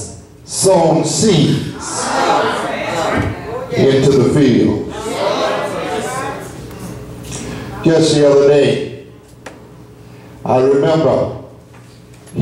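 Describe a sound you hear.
An elderly man preaches with animation through a microphone in an echoing room.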